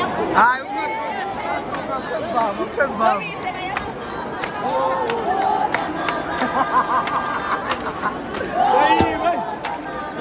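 Rattles on dancers' legs shake in rhythm.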